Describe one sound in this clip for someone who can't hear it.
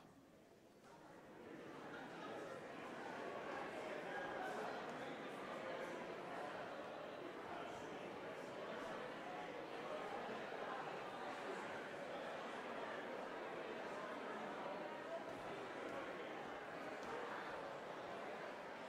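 Many people murmur and chat quietly in a large echoing hall.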